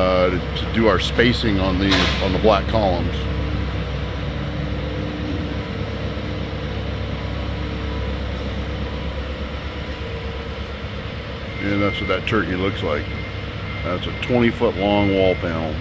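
A loader's engine idles steadily in a large echoing hall.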